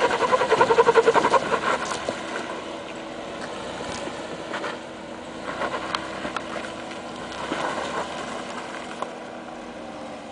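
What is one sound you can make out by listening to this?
Tyres crunch and scrape over rocks and gravel.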